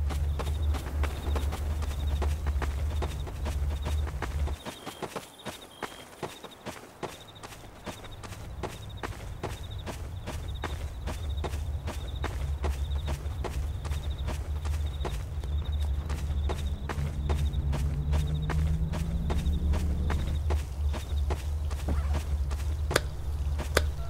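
Footsteps crunch steadily on dirt ground.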